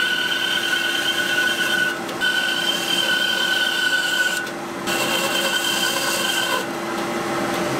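A band saw blade cuts through wood with a high whine.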